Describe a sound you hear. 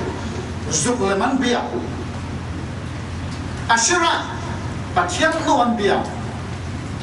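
A middle-aged man preaches with animation into a microphone, in bursts with pauses.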